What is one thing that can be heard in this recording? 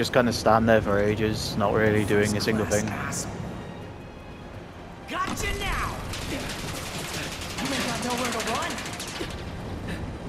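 A young man taunts loudly with animation.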